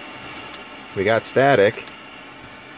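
A car radio plays a short, loud burst of pitched sound through its speaker.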